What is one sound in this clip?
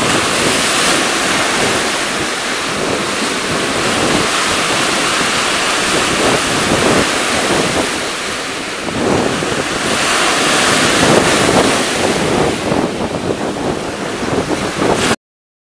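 Shallow water ripples and laps over pebbles.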